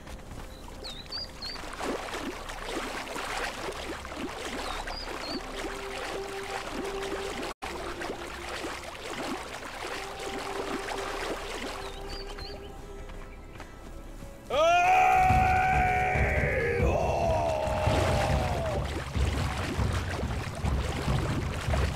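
Water splashes as a swimmer paddles.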